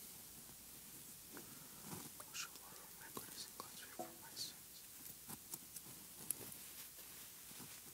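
Small clinks of glass and metal sound as vessels are handled.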